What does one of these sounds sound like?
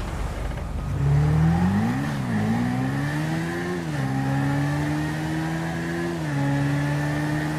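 A motorcycle engine revs up and down, then holds a steady drone.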